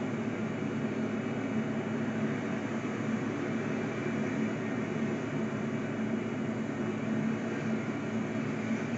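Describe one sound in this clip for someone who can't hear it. A freight train rumbles steadily past in the distance.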